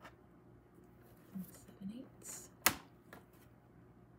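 A paper trimmer blade slides and cuts through paper.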